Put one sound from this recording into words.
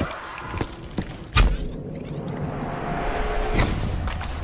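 A swirling portal roars with a rushing whoosh.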